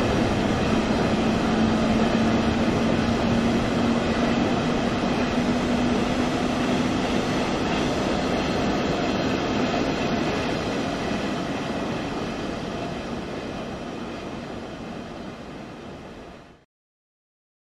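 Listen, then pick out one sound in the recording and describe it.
A passenger train rumbles past close by and slowly fades away.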